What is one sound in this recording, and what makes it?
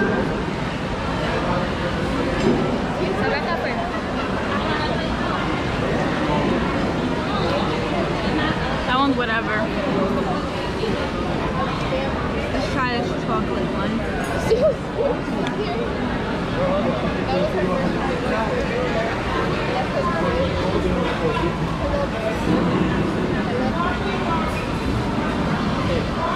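A crowd of diners chatters in the background.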